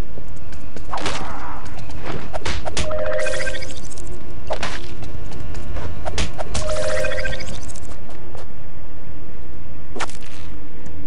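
Punches land with sharp thuds during a fight.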